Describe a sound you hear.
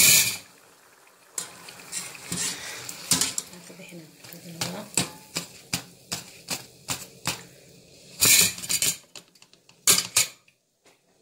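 A metal strainer clinks against a pot.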